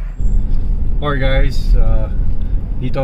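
A middle-aged man talks casually inside a car.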